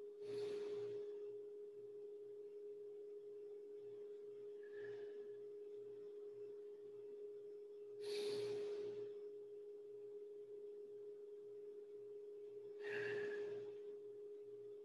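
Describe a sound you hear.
A man breathes out heavily now and then.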